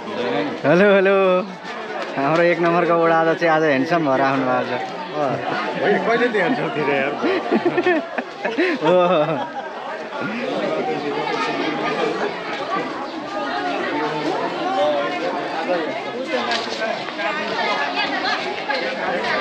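A crowd chatters around outdoors.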